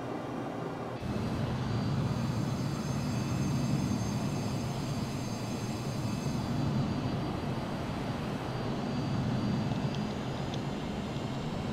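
A jet engine roars steadily outside.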